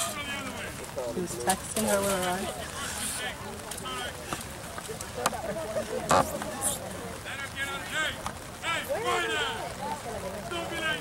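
Young women call out to each other across an open field.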